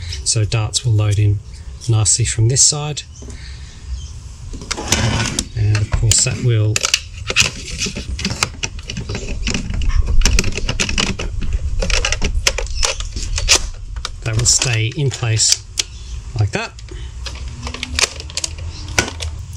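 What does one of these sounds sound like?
Plastic toy parts click and rattle as they are handled and fitted together.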